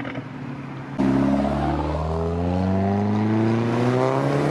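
A second sports car engine roars past and rises in pitch.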